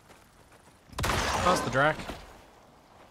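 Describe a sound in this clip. A shotgun fires once with a loud, booming blast.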